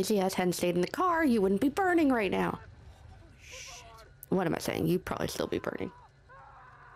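A young woman talks with animation through a microphone.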